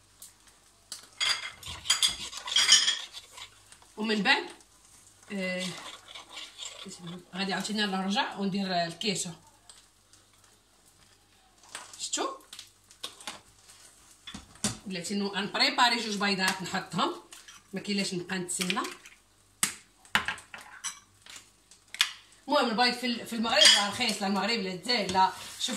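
A fork beats eggs, clinking against a bowl.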